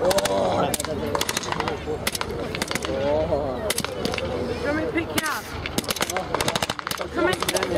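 Rifle shots crack in quick bursts outdoors.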